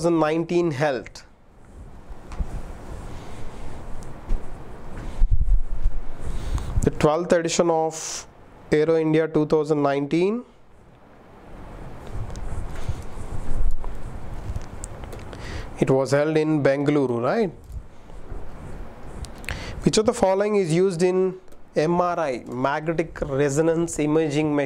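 A young man speaks clearly into a close microphone, in a steady lecturing tone.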